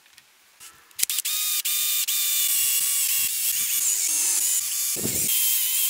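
An electric drill whines as it bores into wood.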